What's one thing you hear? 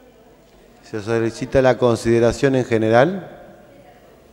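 A man speaks briefly and calmly through a microphone.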